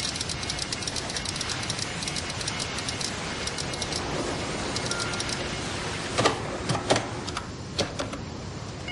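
Machine keys clack rapidly as fingers press them.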